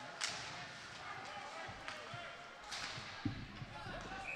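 Hockey sticks clack against a puck on ice.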